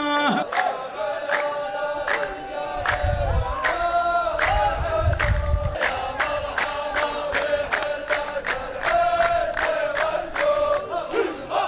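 A group of men chants together.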